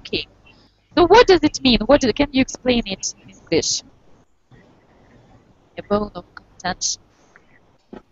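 A young woman speaks animatedly into a headset microphone, heard through an online call.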